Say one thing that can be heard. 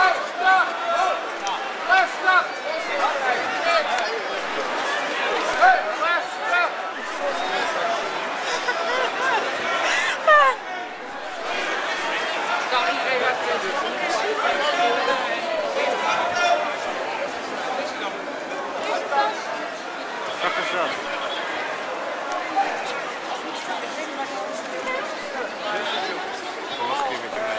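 A large outdoor crowd of men and women chatters and shouts all around, close by.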